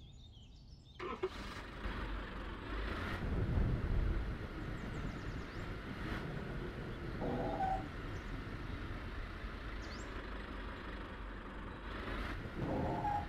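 A forklift engine runs as the forklift drives.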